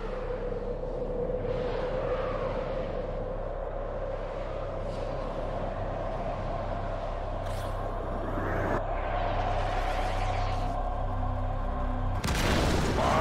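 Spaceship engines hum low and steady.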